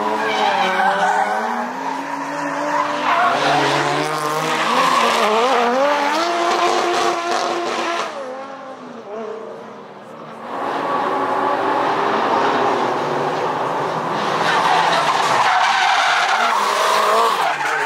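Tyres squeal on the road.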